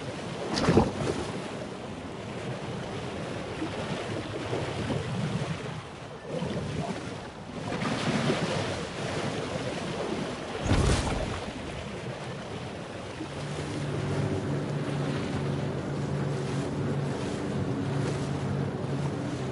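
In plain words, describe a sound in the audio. Water splashes and churns as a shark swims near the surface.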